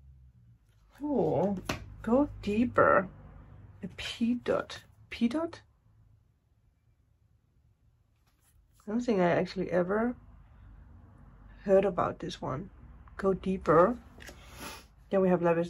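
A young woman speaks calmly and close to a microphone, in short bursts.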